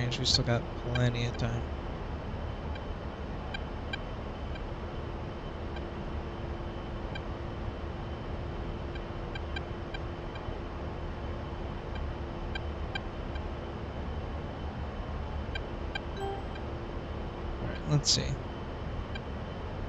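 A jet engine hums and roars steadily inside a cockpit.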